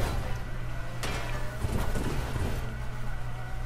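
A car crashes through a hedge.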